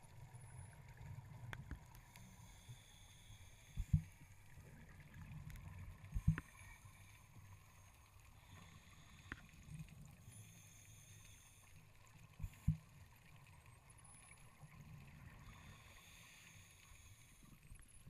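Bubbles from a diver's breathing gurgle and rumble underwater.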